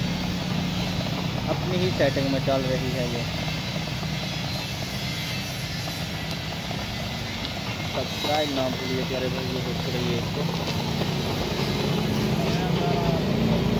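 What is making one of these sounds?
A cutting torch hisses and roars steadily as it burns through steel.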